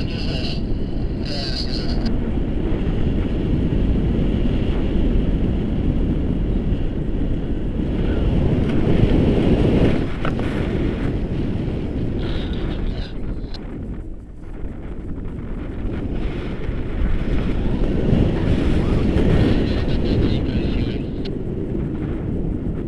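Strong wind roars and buffets loudly, outdoors in the open air.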